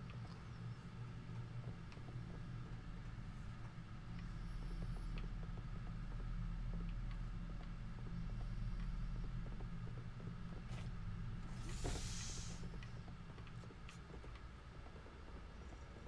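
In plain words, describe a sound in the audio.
A low, steady hum drones throughout.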